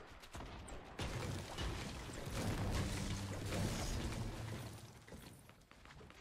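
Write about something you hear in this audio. A pickaxe chops repeatedly at stone in a video game.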